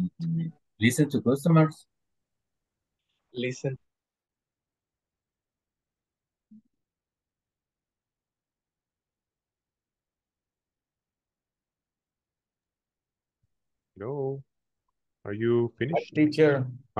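A man speaks calmly through an online call, in short bursts with long pauses.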